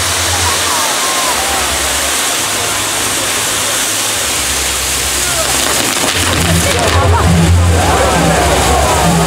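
Fireworks crackle and fizz loudly, close by.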